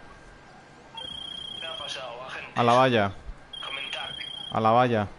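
A phone rings with a short repeating tone.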